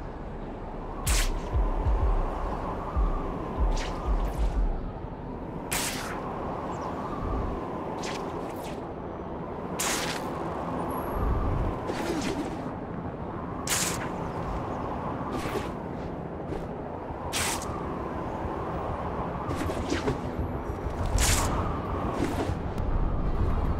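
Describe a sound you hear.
A web shoots out with a sharp swish, again and again at a steady pace.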